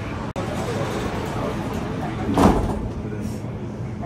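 Train doors slide shut.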